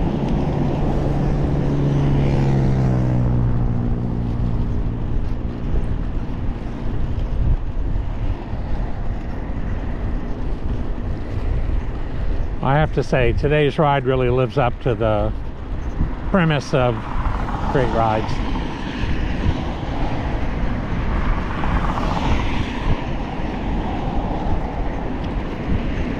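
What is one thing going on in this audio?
Wind buffets loudly outdoors throughout.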